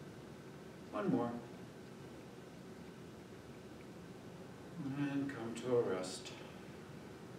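A middle-aged man speaks a few short words calmly in an echoing room.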